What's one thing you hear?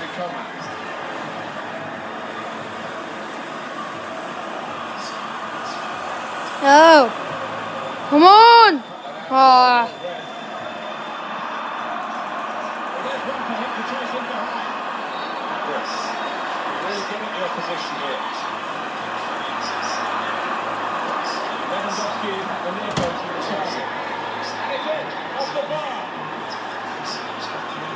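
A stadium crowd roars steadily through a television speaker.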